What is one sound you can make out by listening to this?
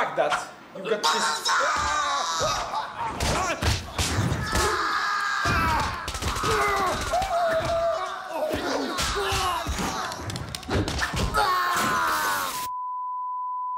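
A man shouts and screams while struggling.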